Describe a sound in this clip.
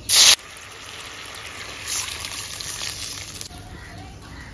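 Liquid batter pours into a hot pan and hisses.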